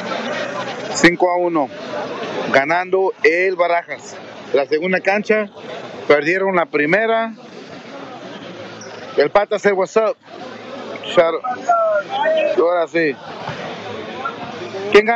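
A young man talks loudly and excitedly close by.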